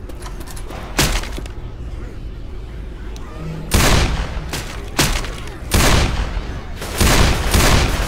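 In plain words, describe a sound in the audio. A pistol fires single shots.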